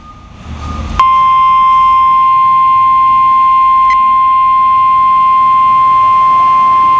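A small radio gives a long, steady high beep.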